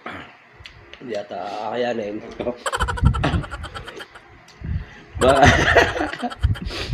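A man talks and laughs with animation close by.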